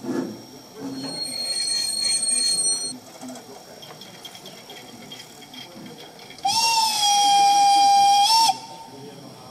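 A model steam locomotive gives a shrill whistle.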